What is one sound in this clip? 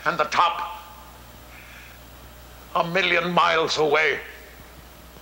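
An elderly man speaks with feeling, his voice carrying in a large hall.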